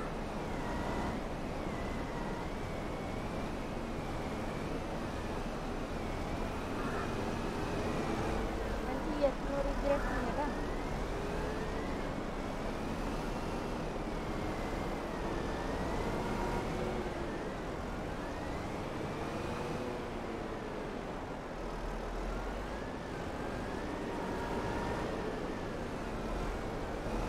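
A heavy loader's diesel engine rumbles and whines steadily.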